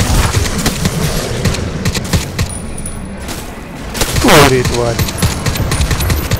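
A gun fires in short bursts.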